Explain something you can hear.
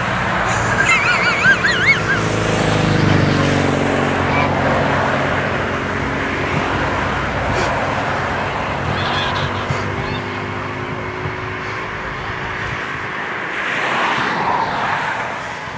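A large flock of geese honks and chatters loudly.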